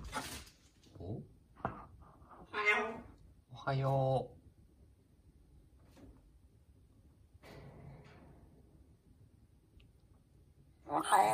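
A parrot calls out with short squawks and chattering sounds nearby.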